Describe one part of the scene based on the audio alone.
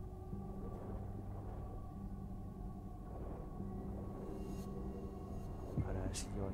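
Bubbles gurgle and rise through deep water.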